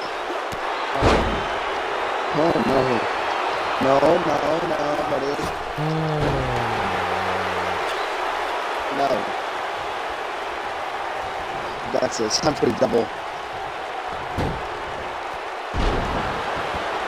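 Bodies slam heavily onto a wrestling mat with loud thuds.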